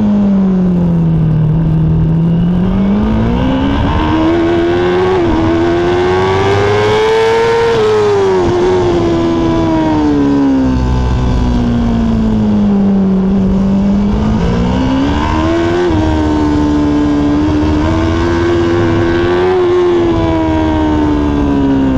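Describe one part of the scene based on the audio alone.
A motorcycle engine roars loudly up close, its pitch rising and falling as it revs through the gears.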